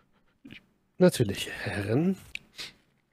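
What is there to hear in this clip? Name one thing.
Another man talks over an online call.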